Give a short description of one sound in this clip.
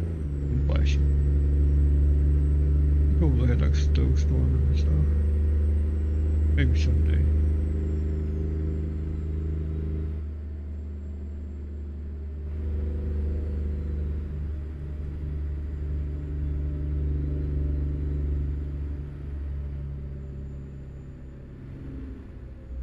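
A truck engine drones steadily as it drives along a highway.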